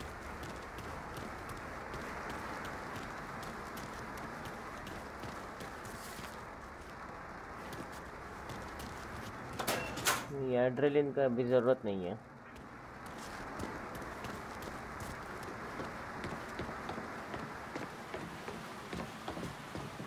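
Footsteps fall on a concrete floor.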